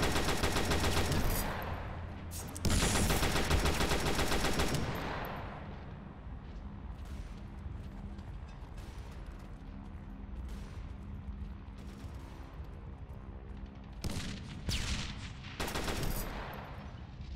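A submachine gun fires short, loud bursts.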